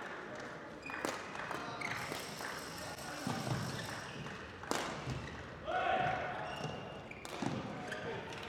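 Rackets strike a shuttlecock with sharp pops.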